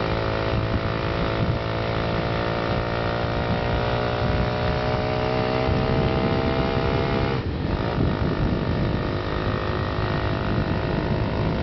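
A motorcycle engine drones steadily, slowly rising in pitch before dropping suddenly.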